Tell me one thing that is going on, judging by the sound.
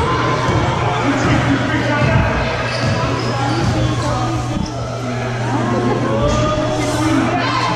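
Shoes squeak on a gym floor.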